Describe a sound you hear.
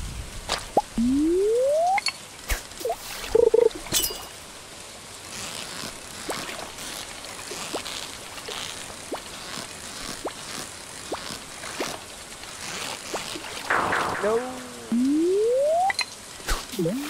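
A fishing cast whooshes out with a quick rising whistle.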